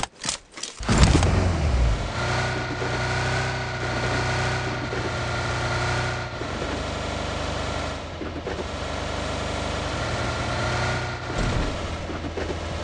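A car engine hums steadily as the car drives over rough ground.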